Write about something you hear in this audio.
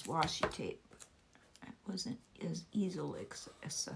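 Sticky tape crinkles as fingers press it down.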